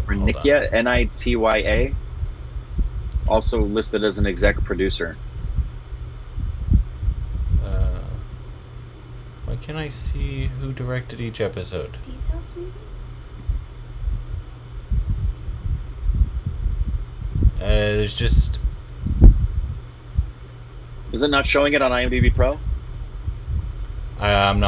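A middle-aged man speaks over an online call.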